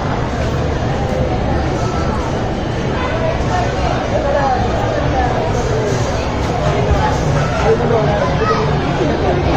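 A crowd murmurs in a busy, noisy hall.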